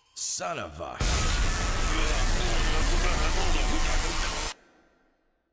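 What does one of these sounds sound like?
Electricity crackles loudly in a roaring burst.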